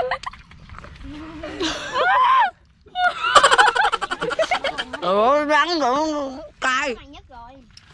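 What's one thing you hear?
Several boys laugh together.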